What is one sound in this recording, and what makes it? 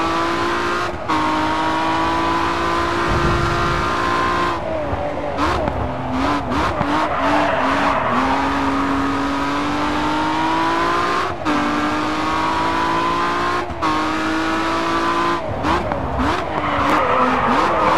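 A car engine roars and shifts through gears at high speed.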